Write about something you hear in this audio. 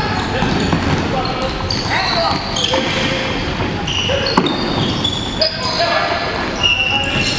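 Young men shout to each other across the echoing hall.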